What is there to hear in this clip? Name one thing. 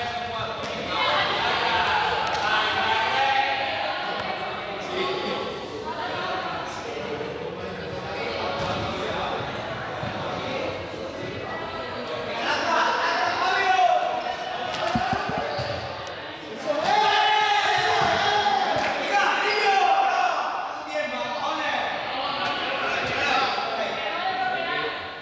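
Sneakers squeak and shuffle on a hard floor.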